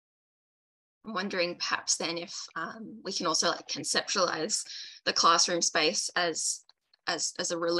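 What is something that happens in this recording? A young woman speaks calmly over an online call.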